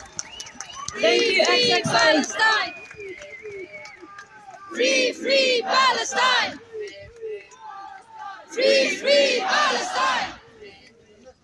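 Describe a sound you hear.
A crowd chants loudly in unison outdoors.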